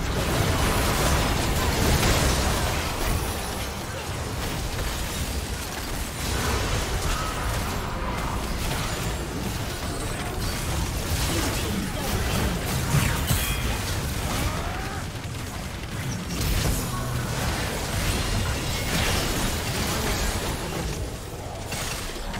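Magic blasts whoosh and crackle during a fast video game battle.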